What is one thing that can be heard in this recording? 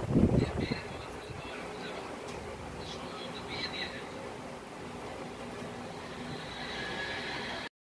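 Metal chains jingle softly as they are shaken.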